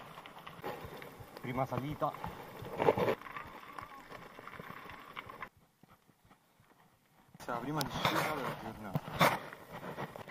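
A bicycle rattles as it bumps over rocks.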